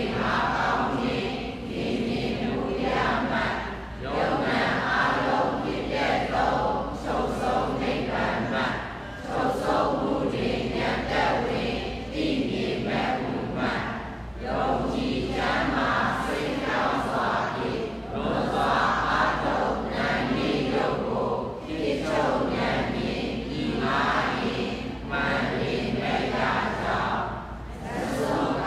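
A man chants steadily through a microphone in a large echoing hall.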